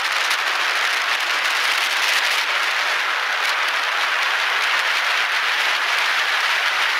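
Wind rushes steadily past while travelling along a road.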